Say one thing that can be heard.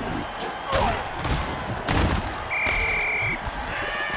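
Heavy bodies crash together in a hard tackle.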